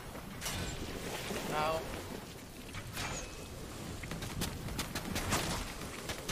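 Short game sound effects click and chime as items are picked up.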